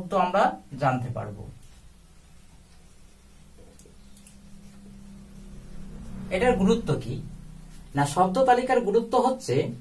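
A young man speaks calmly and clearly, as if explaining.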